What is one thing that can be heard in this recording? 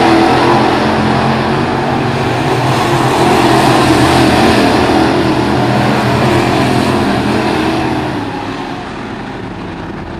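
Race car engines roar loudly as cars speed past, then fade into the distance.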